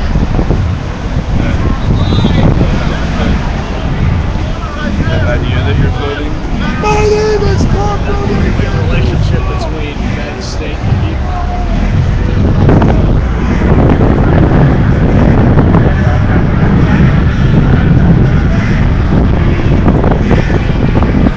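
A crowd of people talks and calls out outdoors.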